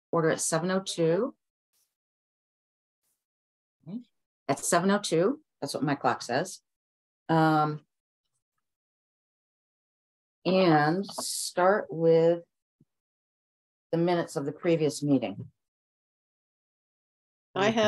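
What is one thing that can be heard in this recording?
A middle-aged woman speaks calmly over an online call, in short phrases with pauses.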